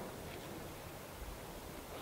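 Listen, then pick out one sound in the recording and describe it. A golf putter taps a ball on grass.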